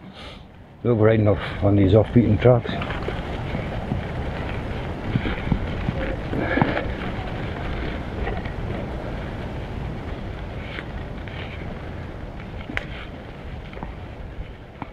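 Wind rumbles against the bicycle rider outdoors.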